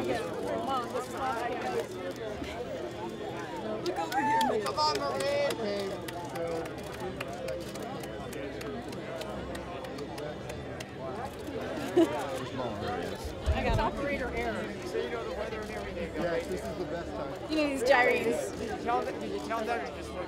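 A woman talks cheerfully close by, outdoors.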